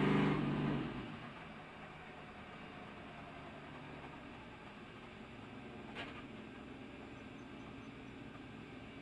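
A race car engine idles with a low, rough rumble.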